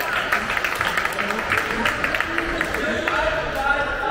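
A handball bounces on a wooden floor in an echoing hall.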